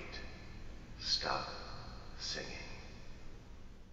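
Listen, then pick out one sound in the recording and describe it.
A young man speaks softly, close by.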